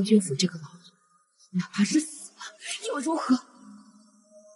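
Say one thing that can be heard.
A young woman speaks tensely and close by.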